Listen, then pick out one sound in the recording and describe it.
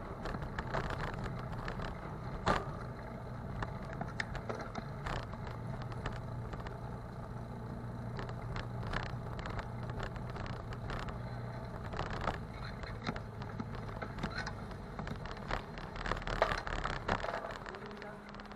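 A small vehicle's engine hums as it drives slowly along a narrow street.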